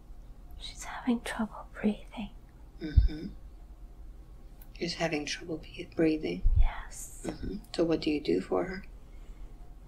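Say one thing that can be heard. An elderly woman speaks close by in a strained, pained voice.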